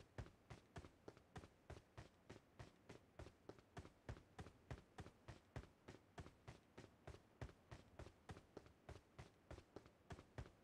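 Footsteps thud quickly and evenly on pavement as a soldier runs.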